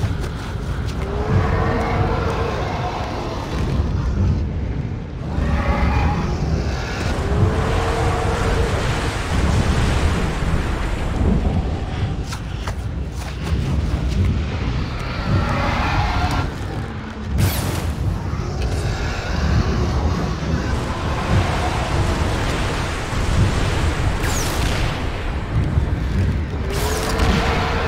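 A deep, rumbling roar booms and swells again and again.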